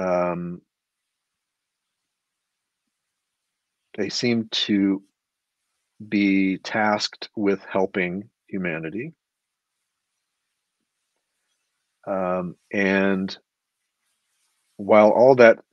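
A middle-aged man speaks calmly over an online call, with pauses.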